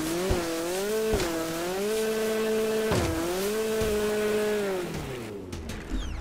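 A jet ski engine hums and whines, rising and falling in pitch.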